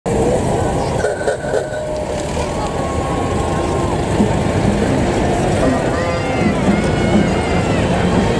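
A large crowd cheers and chatters loudly outdoors.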